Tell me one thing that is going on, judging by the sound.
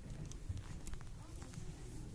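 Clothes rustle as a hand pushes them along a rack.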